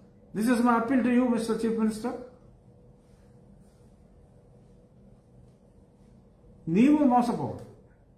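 A middle-aged man speaks calmly and close into a microphone, pausing between phrases.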